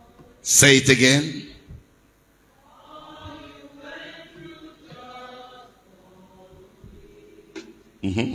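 A man shouts loudly into a microphone through loudspeakers in an echoing hall.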